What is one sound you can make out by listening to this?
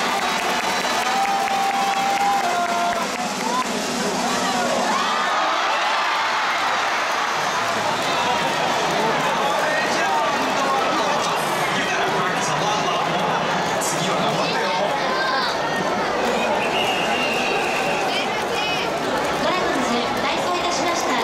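A large stadium crowd cheers and chatters loudly throughout.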